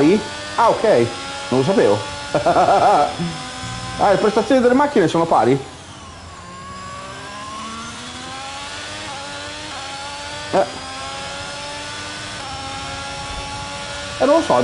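A racing car engine roars and climbs in pitch as it shifts through gears.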